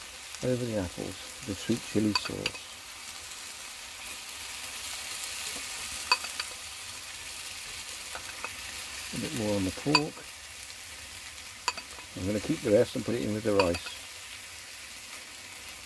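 A metal utensil scrapes and taps against the pan.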